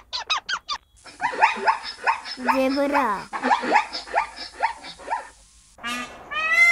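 A zebra barks and brays.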